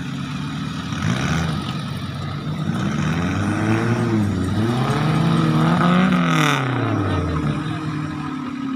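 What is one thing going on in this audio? A nearby engine revs up and down loudly.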